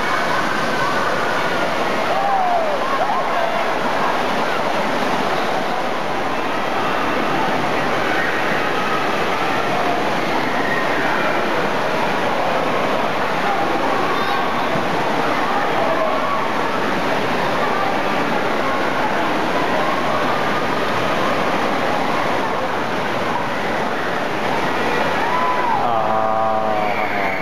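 Children shout and squeal in a large echoing hall.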